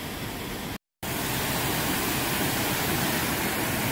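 Water rushes and splashes over rocks nearby.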